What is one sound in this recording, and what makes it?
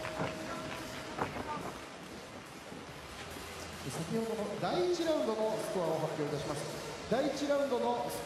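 A large crowd cheers and murmurs in a big echoing hall.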